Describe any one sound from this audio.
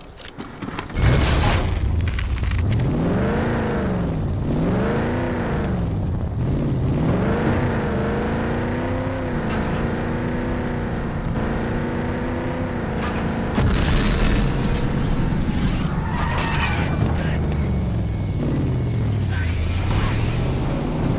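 Tyres rumble over dirt and gravel.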